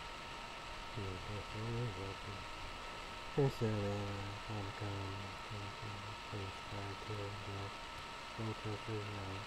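A young man speaks calmly and quietly close to a microphone.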